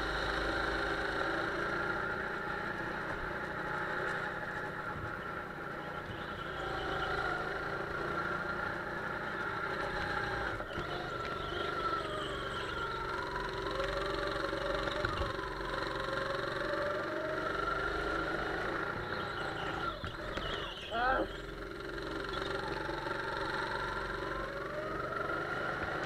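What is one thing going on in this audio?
A go-kart engine buzzes loudly and rises and falls in pitch as it speeds around corners.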